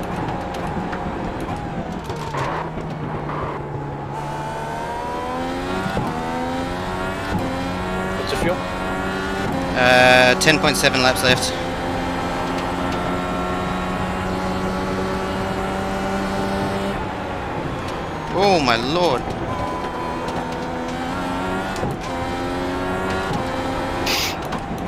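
A racing car engine whines loudly, rising and falling in pitch as the gears shift.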